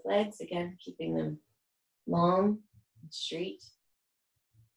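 A woman speaks calmly and clearly up close, giving instructions.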